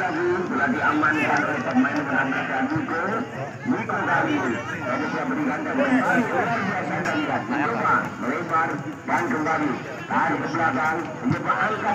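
A crowd of men chatters and calls out outdoors nearby.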